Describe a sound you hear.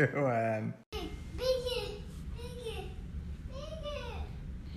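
A young child shouts with excitement nearby.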